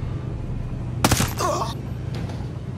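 A suppressed rifle fires a single shot.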